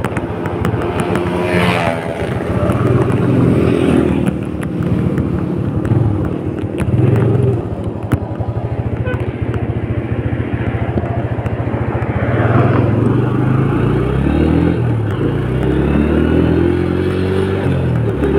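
A scooter engine runs close by, revving up and down.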